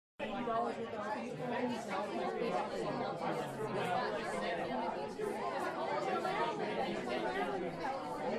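A crowd of men and women chatter.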